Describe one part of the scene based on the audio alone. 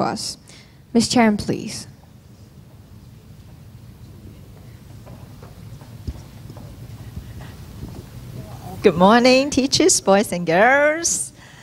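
A young woman speaks into a microphone over loudspeakers in a large echoing hall.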